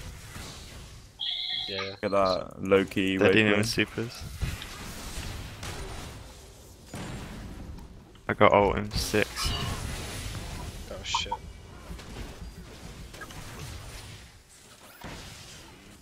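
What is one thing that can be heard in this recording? Video game combat effects clash and burst.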